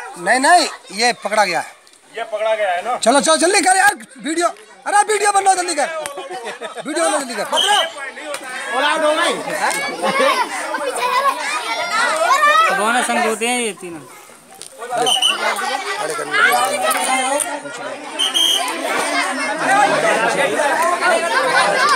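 A crowd of children chatters and shouts outdoors.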